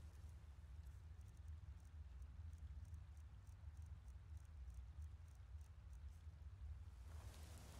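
Soft menu clicks tick quickly as a list scrolls.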